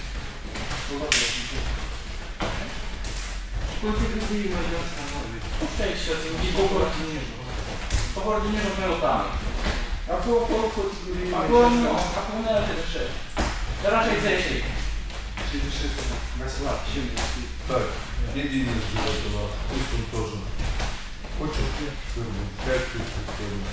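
Bare feet shuffle and thump on a soft mat.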